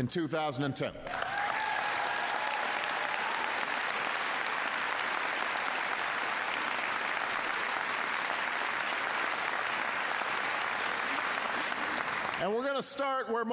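A crowd applauds loudly and steadily.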